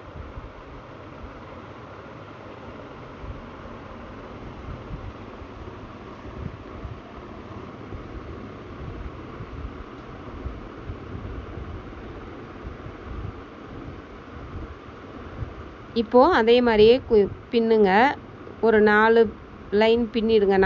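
Plastic strips rustle and crinkle as they are threaded through a woven basket.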